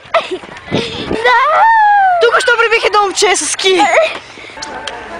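A young woman screams as she slides down on a sled.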